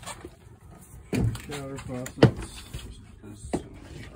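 A door opens and closes with a soft knock.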